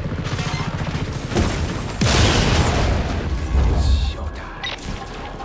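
A helicopter crashes with a loud explosion.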